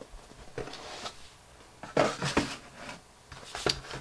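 A cardboard box lid slides off with a soft scrape.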